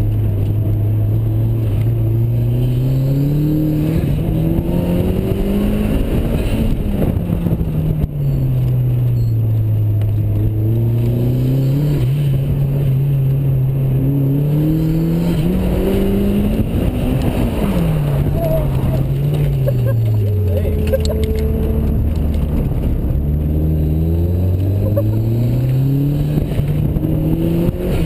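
Wind rushes past an open car.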